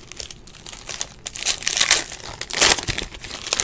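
A foil card pack crinkles and tears open close by.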